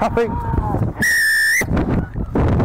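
A referee's whistle blows one long shrill blast.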